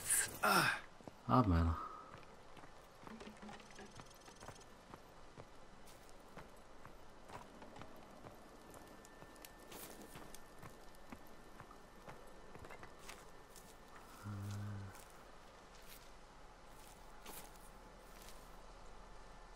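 Footsteps rustle through dry grass at a steady walk.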